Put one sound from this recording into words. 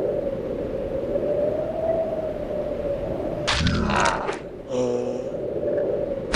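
Slow, droning game music plays.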